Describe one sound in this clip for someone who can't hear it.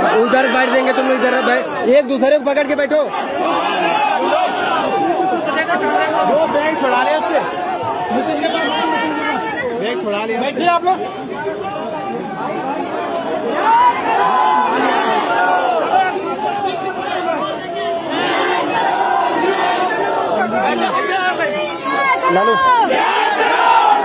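A large crowd of men chants and shouts together outdoors.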